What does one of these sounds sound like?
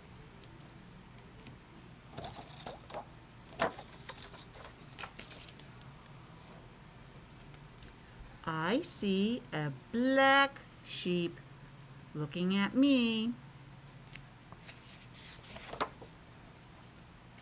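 Pages of a ring-bound book rustle as they are turned.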